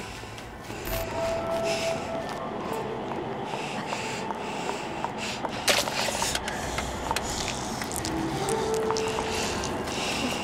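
A ticket machine beeps.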